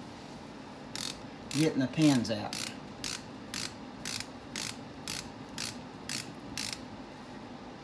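A ratchet wrench clicks in quick, even ticks.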